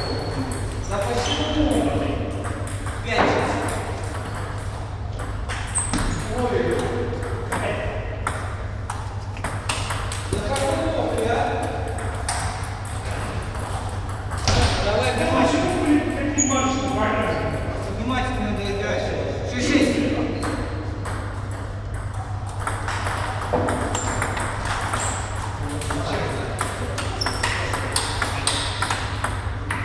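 Table tennis balls click back and forth on tables and paddles in an echoing hall.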